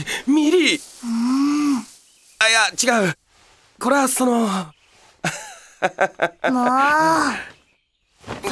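A young man laughs awkwardly and stammers.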